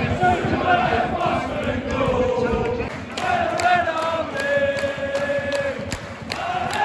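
A large stadium crowd sings and chants loudly nearby, outdoors.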